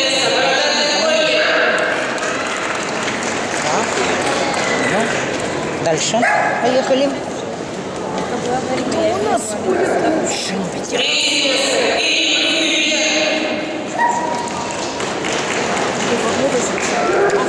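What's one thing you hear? A crowd of people chatters throughout a busy, echoing hall.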